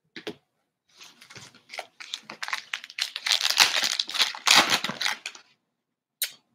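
A foil wrapper crinkles and tears open in someone's hands.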